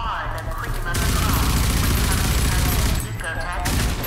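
A rapid-fire gun shoots in bursts.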